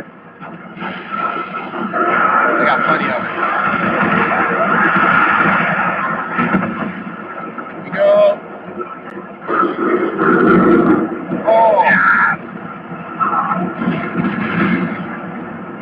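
A flamethrower roars in long, loud bursts.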